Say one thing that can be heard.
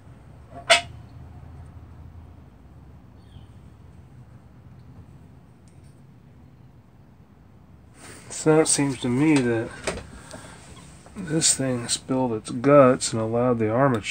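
Small metal parts click together as they are handled.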